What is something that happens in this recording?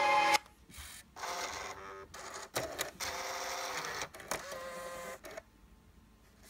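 A car CD player's mechanism whirs as it ejects a disc.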